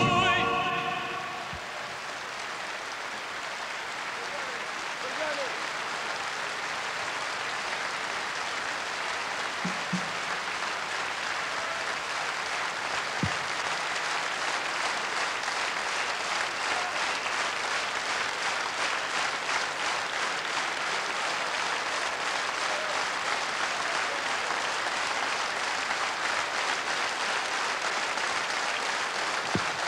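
A large crowd applauds steadily outdoors.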